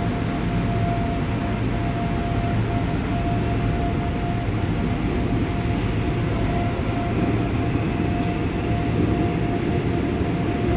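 A high steady whine from the train's motor runs throughout.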